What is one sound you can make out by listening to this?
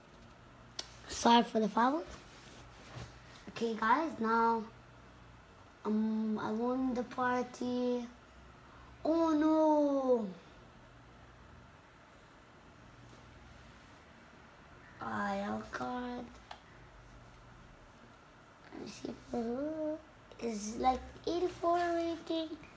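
A child speaks close by.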